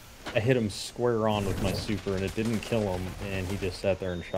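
Gunfire and blasts crack in a video game.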